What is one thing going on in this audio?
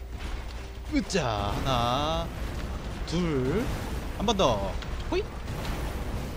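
A huge beast roars and screeches.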